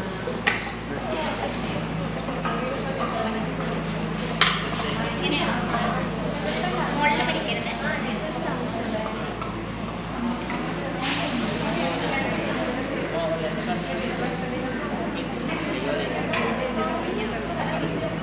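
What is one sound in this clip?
Several young people chatter and talk nearby in a room with some echo.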